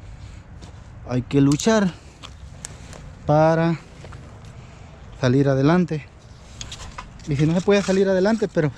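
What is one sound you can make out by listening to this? Footsteps crunch on dry leaves and soil.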